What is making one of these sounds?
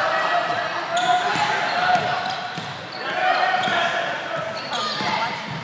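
A basketball bounces on a wooden floor as a player dribbles.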